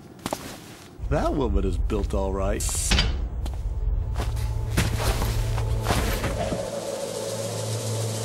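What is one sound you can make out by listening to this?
A man crawls through a metal duct with dull knocks.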